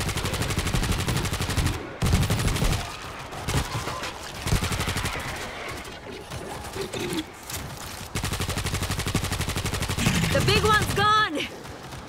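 Automatic gunfire rattles rapidly in quick bursts.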